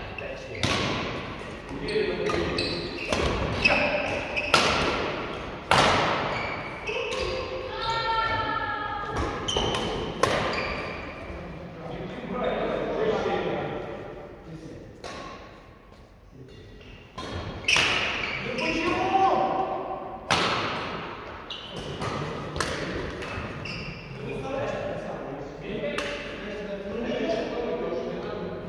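Badminton rackets smack a shuttlecock with sharp pops that echo in a large hall.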